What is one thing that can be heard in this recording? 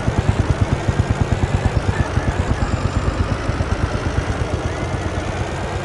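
A van engine hums steadily as it drives along.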